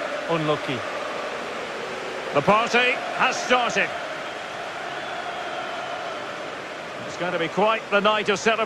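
A large crowd roars and cheers steadily in a big stadium.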